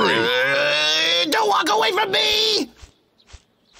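A man shouts angrily in a strained, gritted voice.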